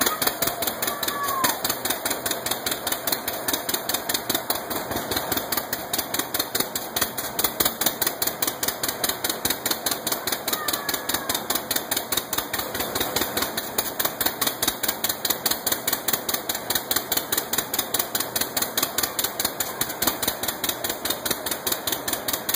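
An old engine chugs and pops with a fast, even beat, close by.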